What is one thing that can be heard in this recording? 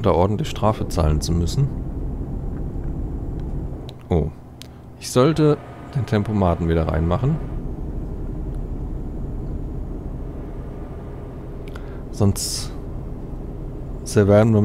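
A truck engine hums steadily while driving on a highway.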